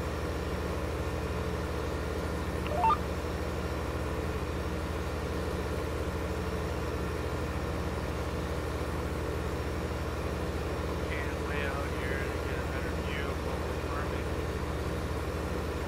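A tractor engine drones steadily at low revs.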